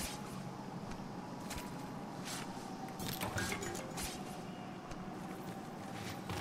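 A blade carves into a large creature's carcass with short, wet cutting sounds.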